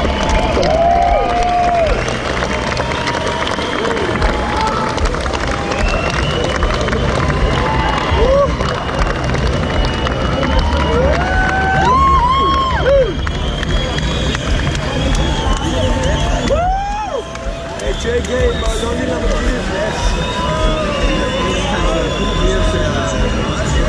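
A band plays loud live music through large loudspeakers, heard from within a crowd.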